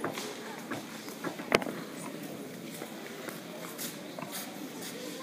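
Children chatter quietly in a large echoing hall.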